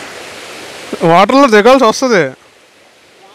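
A man speaks loudly close by.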